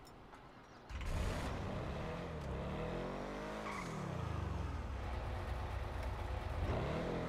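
A car engine revs as the car drives off.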